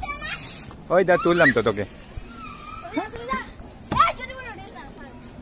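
A child speaks excitedly nearby.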